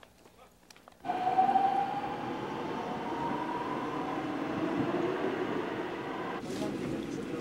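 A subway train rumbles and whines rising in pitch as it pulls in.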